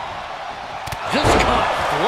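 A wrestler slams hard onto the ring mat with a heavy thud.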